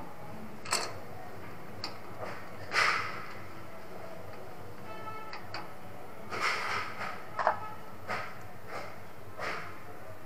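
Wires rustle and scrape as hands handle them.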